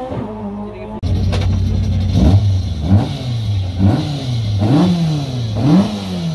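A rally car engine idles and revs up sharply again and again.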